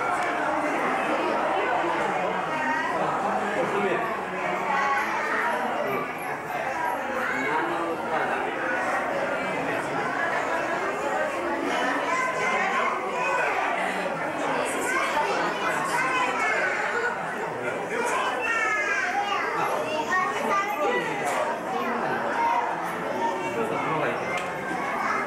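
A crowd of adults and children chatter throughout a large echoing hall.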